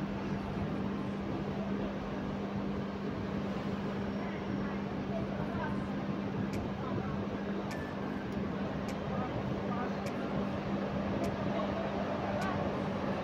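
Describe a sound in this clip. A bus engine idles with a steady low hum.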